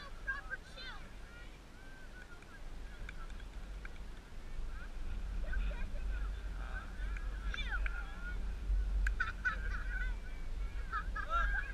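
Wind blusters against the microphone outdoors, growing stronger partway through.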